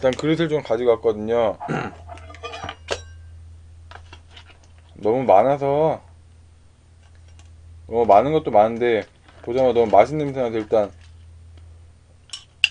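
A metal spoon clinks against a bowl.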